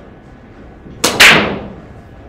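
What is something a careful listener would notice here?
A cue strikes the cue ball hard in a pool break.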